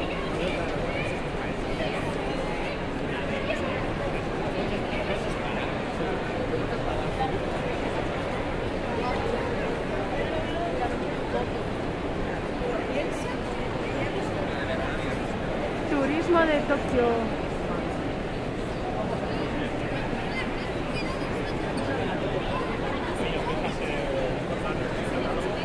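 Many voices of men and women chatter steadily in a large, echoing hall.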